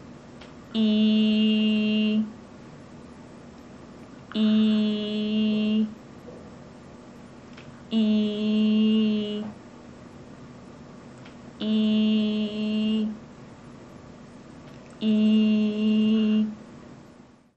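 A young woman sings a long held note close by, in short bursts with pauses between.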